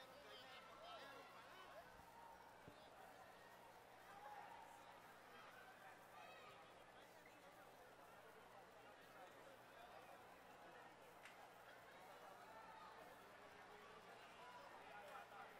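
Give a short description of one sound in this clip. A large crowd chatters and cheers in a big echoing arena.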